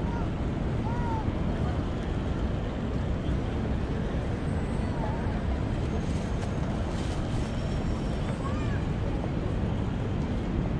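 People chatter faintly in the distance across an open outdoor space.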